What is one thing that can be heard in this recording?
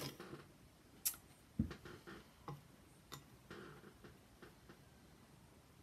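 Fabric and pins click and rustle.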